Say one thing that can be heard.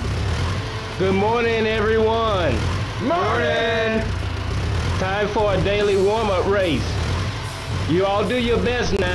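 A man calls out cheerfully to a group.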